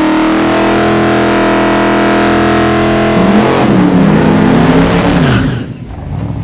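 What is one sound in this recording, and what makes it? Tyres squeal and screech on tarmac.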